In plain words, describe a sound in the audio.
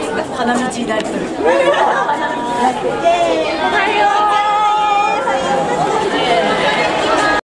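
A crowd of people chatter and call out excitedly nearby.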